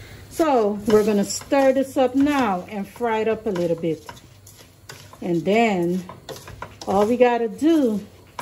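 A spoon scrapes and stirs rice in a metal pot.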